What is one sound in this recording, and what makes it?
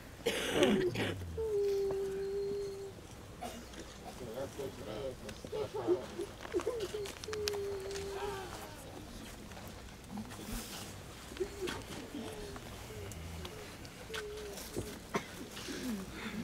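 A crowd of people chants a prayer together in a slow, drawn-out voice.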